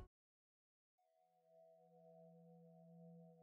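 A low, steady musical drone hums.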